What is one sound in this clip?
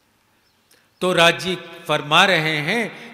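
An elderly man speaks into a microphone through a loudspeaker, in a slow, chanting voice.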